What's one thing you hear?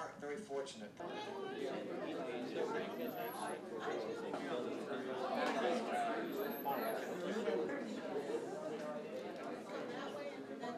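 A crowd of men and women chat in a busy indoor room.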